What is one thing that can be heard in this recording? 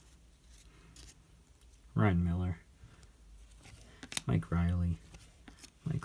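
Trading cards rustle softly as they are shuffled by hand.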